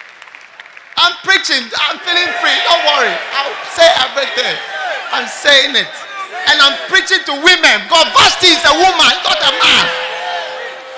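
A man speaks loudly and with animation through a microphone in a large echoing hall.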